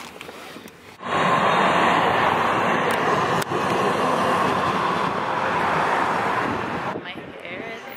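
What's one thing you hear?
A tram rumbles loudly past on the street.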